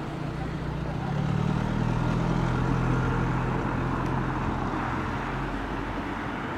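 A car engine hums as a car drives past close by.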